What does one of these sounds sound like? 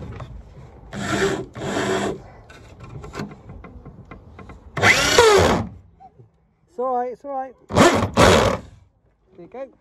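A power drill whirs in short bursts close by.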